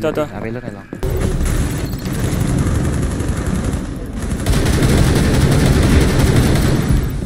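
Rapid gunfire rattles loudly and steadily.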